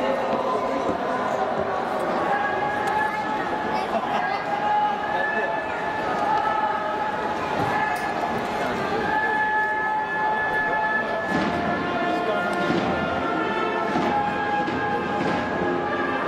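A padded door thumps softly against a wall.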